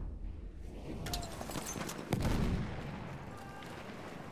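Gunshots crack nearby amid a noisy battle.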